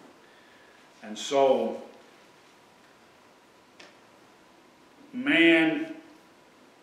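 An older man speaks slowly in short, drawn-out phrases.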